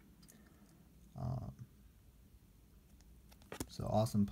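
A plastic card sleeve crinkles softly between fingers.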